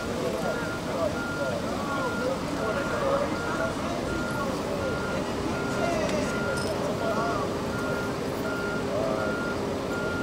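An emergency vehicle's beeper sounds in a steady repeating pattern.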